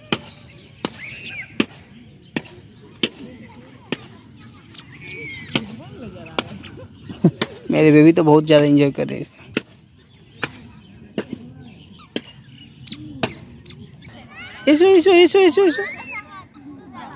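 A toddler babbles and squeals.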